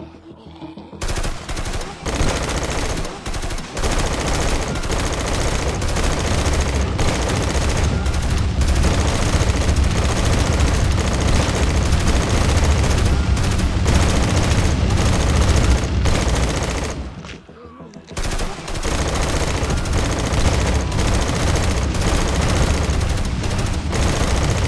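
A flamethrower roars in loud bursts of fire.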